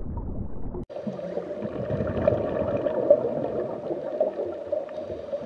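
Water churns and splashes at the surface, heard from underwater.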